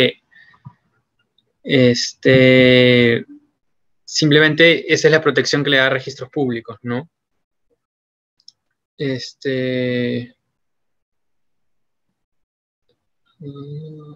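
A young man speaks calmly through an online call, with pauses.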